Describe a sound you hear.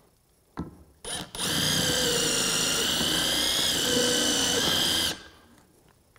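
A cordless drill whirs as it drives a screw into wood.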